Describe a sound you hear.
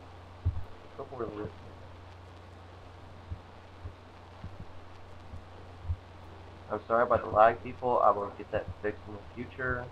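Dirt blocks are placed with soft, dull thuds.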